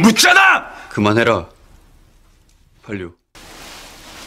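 Another young man answers in a low, firm voice.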